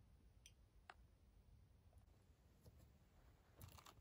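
A cardboard box rustles in someone's hands.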